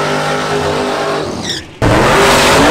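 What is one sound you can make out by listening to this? Tyres screech as they spin on the track.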